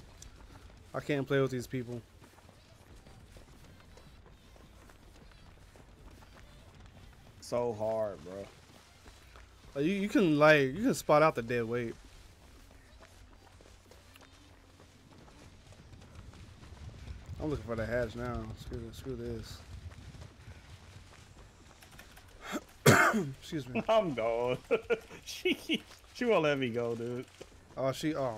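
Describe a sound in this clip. A young man talks in bursts into a close microphone, with animation.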